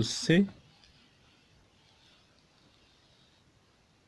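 A book page slides and rustles softly.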